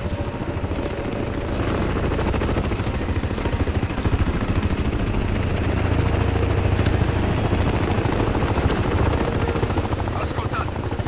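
A helicopter's rotor thuds and roars nearby.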